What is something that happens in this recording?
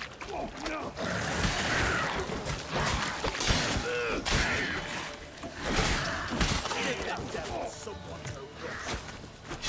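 Swords clash and slash in a fast fight.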